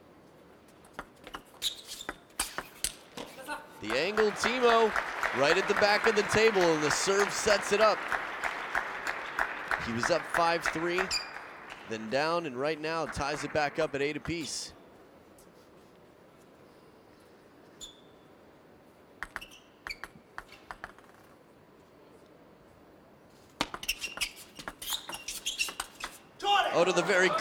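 A ping pong ball clicks rapidly back and forth off paddles and a table.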